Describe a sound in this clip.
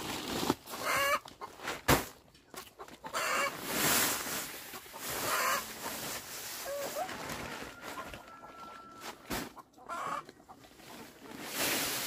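A plastic woven sack rustles as it is handled.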